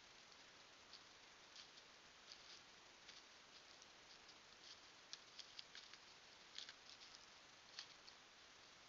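A deer steps through dry leaves.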